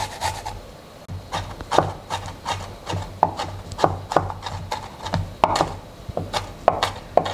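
A chef's knife chops garlic on a wooden cutting board.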